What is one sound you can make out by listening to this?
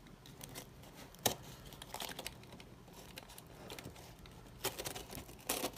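A knife blade scrapes and slits through packing tape on a cardboard box.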